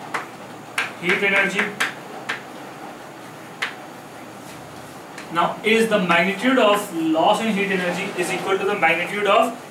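A middle-aged man speaks, explaining as in a lecture.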